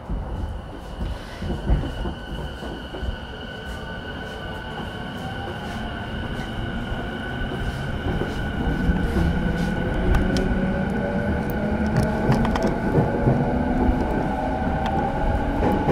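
An electric train's motor whines and rises in pitch as the train starts off.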